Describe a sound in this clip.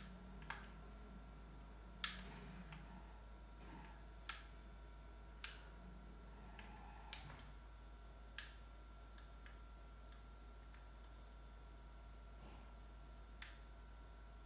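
Sharp bangs from a video game play through a television speaker.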